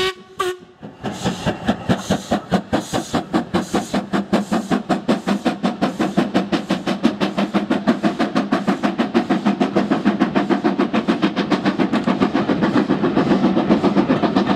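Train wheels clatter rapidly over rail joints.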